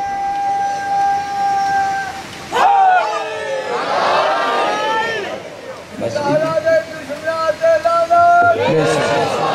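A young man sings a mournful chant through a microphone, heard over a loudspeaker.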